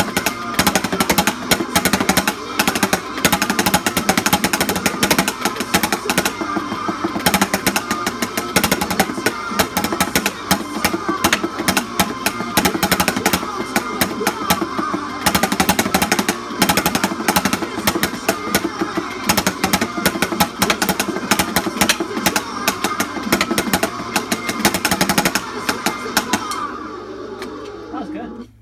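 Loud rock music with drums and electric guitar plays through a television speaker.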